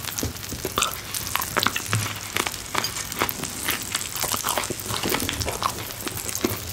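Meat sizzles on a hot stone.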